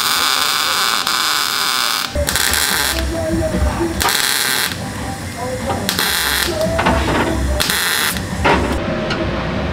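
A grinder grinds metal with a harsh, rough buzz.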